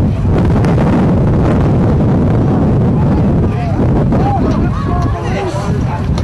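Padded football players collide and thump together on grass.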